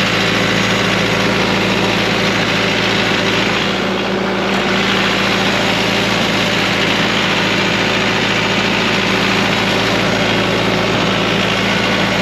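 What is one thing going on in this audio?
A diesel engine idles loudly and steadily close by.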